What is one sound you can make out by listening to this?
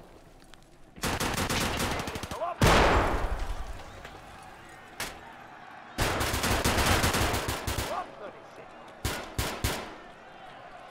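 Gunfire bursts loudly in short rapid volleys.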